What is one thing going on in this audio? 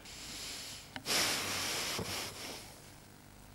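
A young man chews food noisily with his mouth full.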